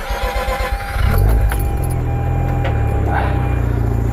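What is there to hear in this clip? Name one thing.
A car engine idles close by with a steady low rumble.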